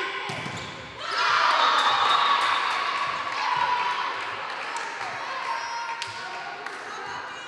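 A crowd in a large echoing hall cheers and chatters.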